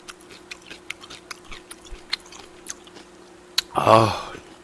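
A young man chews and smacks his lips close to a microphone.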